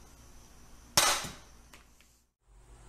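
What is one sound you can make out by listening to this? An aerosol can sprays with a short hiss.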